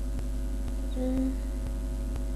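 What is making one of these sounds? A young woman hums briefly, close by.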